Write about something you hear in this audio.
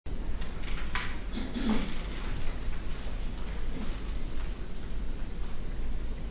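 A string quartet plays in an echoing hall.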